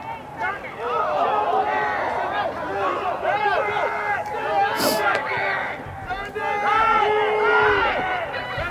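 A crowd cheers and shouts from the stands.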